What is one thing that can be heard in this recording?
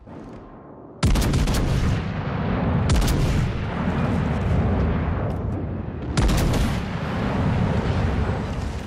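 Heavy naval guns fire in loud, booming volleys.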